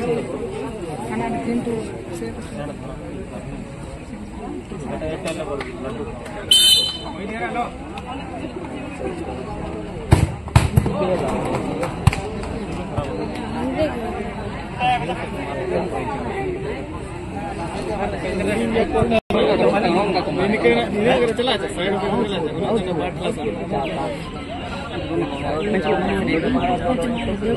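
A crowd of young men chatters and calls out outdoors.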